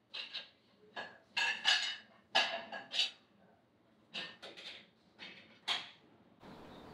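Dishes and metal pans clatter and clank.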